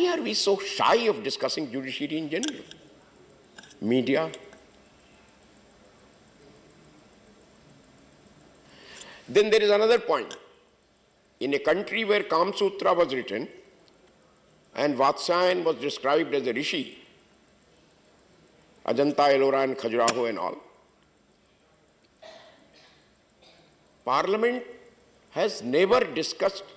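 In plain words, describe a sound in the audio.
An elderly man speaks emphatically into a microphone, in bursts with pauses between.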